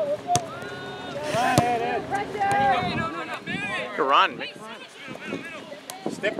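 Young players shout and call out to each other across an open field.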